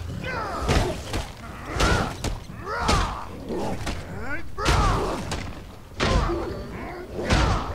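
Heavy weapon blows strike with loud thuds.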